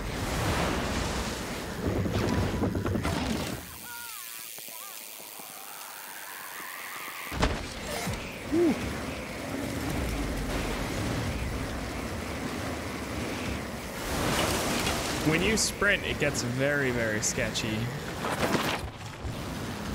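Bicycle tyres crunch and skid over loose dirt and gravel.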